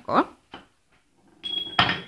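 Wooden blocks knock together.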